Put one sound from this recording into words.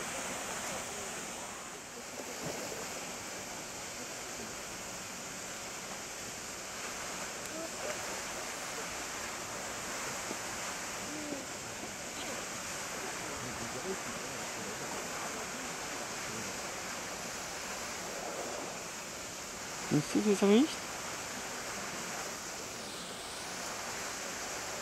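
A waterfall splashes steadily onto rocks.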